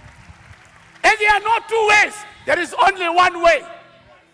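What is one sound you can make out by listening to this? A man preaches loudly and with animation through a microphone.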